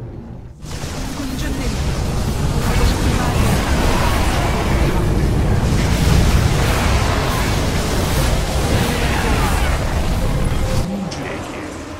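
Energy beams blast and roar in a loud battle.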